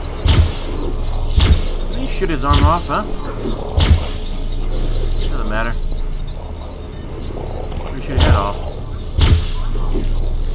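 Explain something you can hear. An energy weapon fires in loud, sharp blasts.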